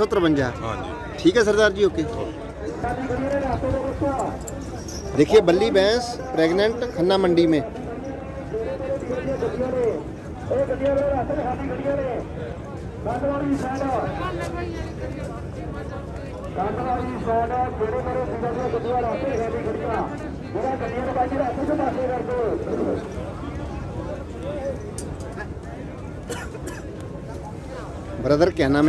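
A man speaks steadily, close to the microphone.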